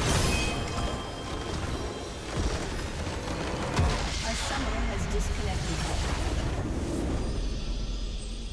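Magical blasts crackle and boom in a fast fight.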